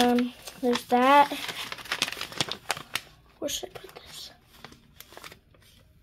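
Paper rustles as a hand moves it.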